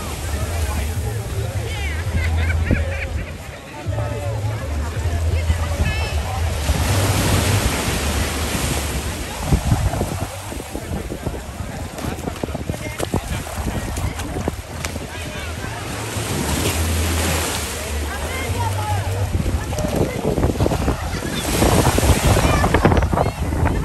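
Young people shout and chatter at a distance.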